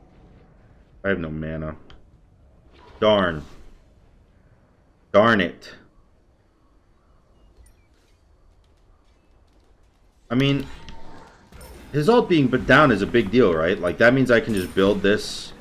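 A young man speaks casually into a nearby microphone.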